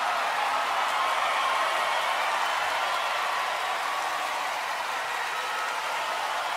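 A large crowd cheers and applauds loudly in a big echoing arena.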